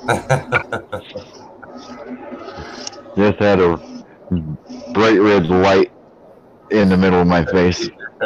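A middle-aged man laughs over an online call.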